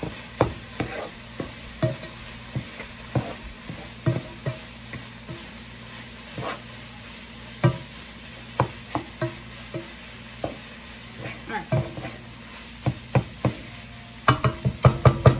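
A spatula scrapes and taps against a pan.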